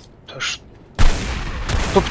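A shotgun fires a single loud blast.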